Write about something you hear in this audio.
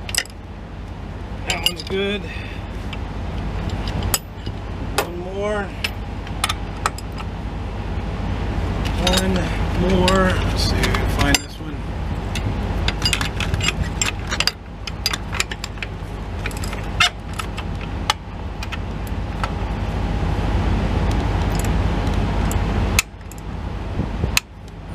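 Metal tools click and clank.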